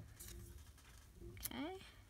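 Paper rustles softly as a small paper cutout is handled.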